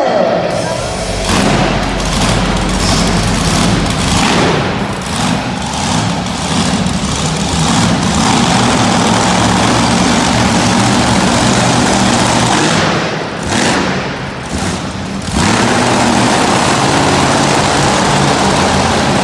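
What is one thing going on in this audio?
Monster truck engines roar loudly in a large echoing arena.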